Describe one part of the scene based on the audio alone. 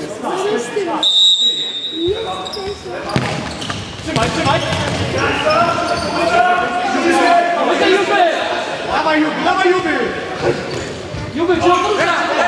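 Sneakers squeak on a hard indoor floor.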